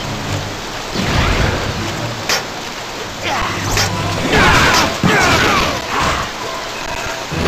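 Punches and kicks land with sharp thuds and whooshes.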